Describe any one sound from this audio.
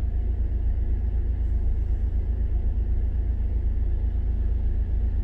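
A car engine rumbles low and steady from inside the vehicle.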